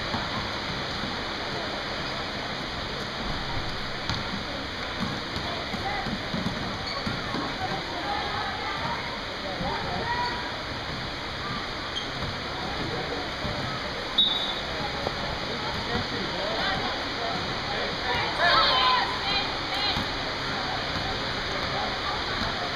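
A crowd of young players and spectators chatter throughout a large echoing hall.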